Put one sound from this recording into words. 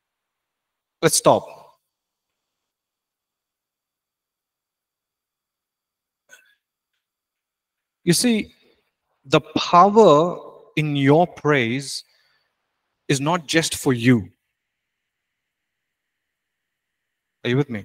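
A young man speaks calmly through a microphone, in short bursts with pauses.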